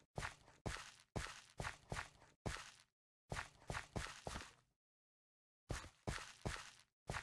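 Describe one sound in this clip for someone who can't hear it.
Soft crunching footsteps on dirt repeat in quick bursts.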